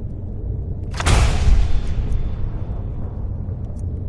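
A bright magical whoosh swells up and slowly fades.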